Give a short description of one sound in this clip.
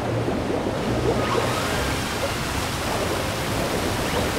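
Water splashes as a figure swims.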